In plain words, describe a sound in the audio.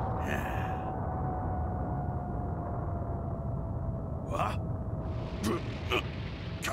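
A fiery blast roars with a deep, steady rumble.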